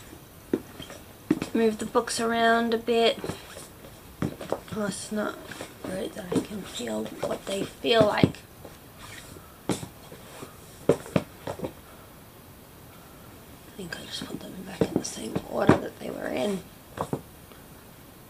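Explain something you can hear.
A woman speaks close to a microphone in a strained, groaning voice.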